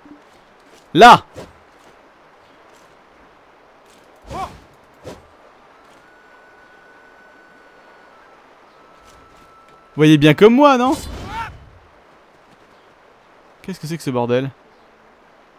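A sword swishes and strikes in short bursts.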